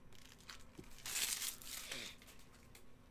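A foil card wrapper crinkles as hands open a pack.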